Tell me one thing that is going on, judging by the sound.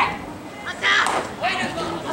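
A metal bat hits a baseball with a sharp ping.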